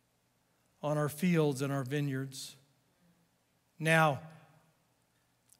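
A middle-aged man speaks slowly and earnestly into a microphone.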